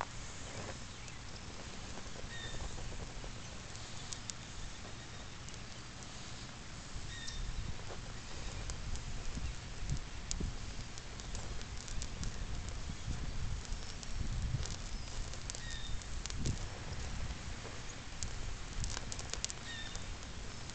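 A flame whooshes as it swings round and round close by.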